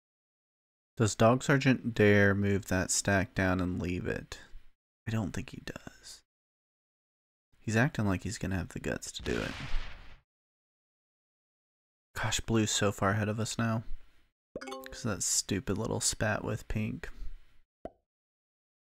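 A man talks calmly and closely into a microphone, in bursts with pauses.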